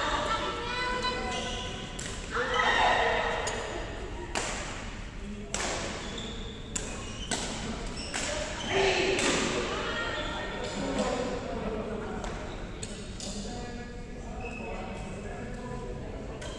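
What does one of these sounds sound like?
Voices of young women call out, echoing in a large hall.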